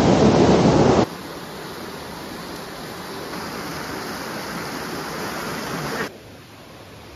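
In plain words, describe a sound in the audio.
Water rushes over rocks in a stream.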